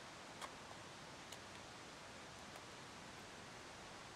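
A can pops open.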